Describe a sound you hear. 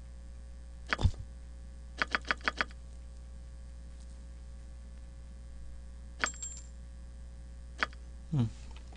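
Short game menu clicks tick now and then.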